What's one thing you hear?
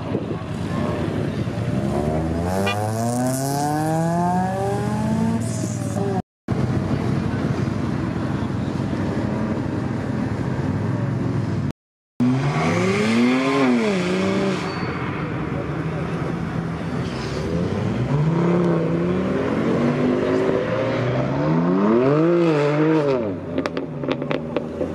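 Sports car engines rev loudly and roar past one after another.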